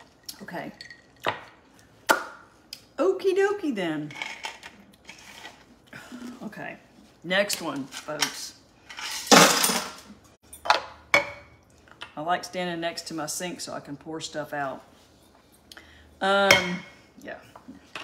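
Metal clinks and clatters against a cup.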